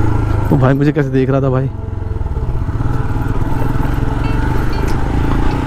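A motorcycle engine runs with a steady close throb.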